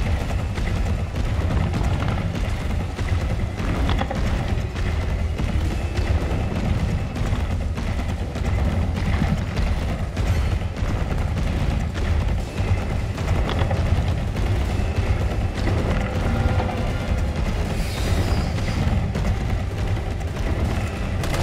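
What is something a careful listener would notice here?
Zombies groan and shuffle nearby.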